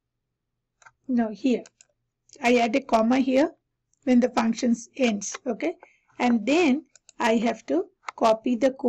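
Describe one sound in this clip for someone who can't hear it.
A young woman speaks calmly and close to a headset microphone.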